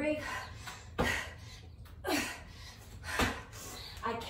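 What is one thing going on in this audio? Feet thud on a concrete floor.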